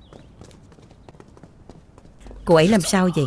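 Footsteps tap softly on a wooden walkway.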